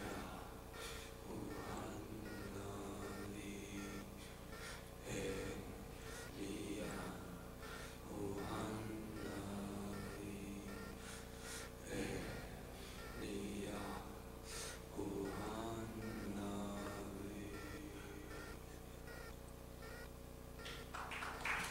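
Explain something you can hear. A man sings through a microphone in a plaintive, wavering voice.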